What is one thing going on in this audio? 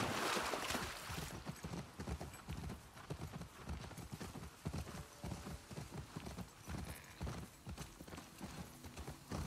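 Tall grass rustles and swishes against a horse's legs.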